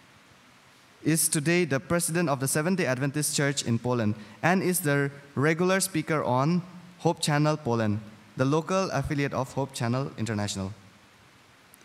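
A young man speaks calmly through a microphone in a large hall.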